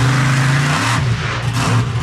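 A heavy truck lands with a crunch on crushed cars.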